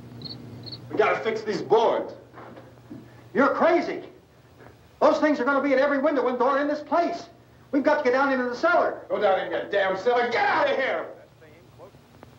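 A man speaks tensely and urgently, close by.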